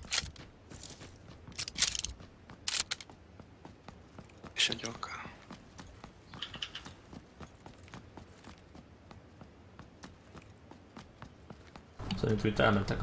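Quick footsteps run on hard pavement.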